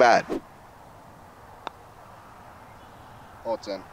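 A putter taps a golf ball.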